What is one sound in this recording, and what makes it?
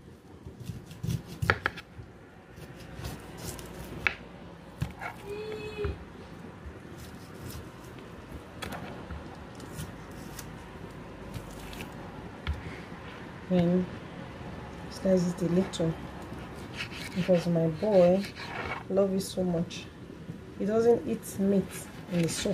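A knife slices through cooked meat and taps on a cutting board.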